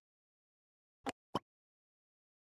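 A game button clicks twice in quick succession.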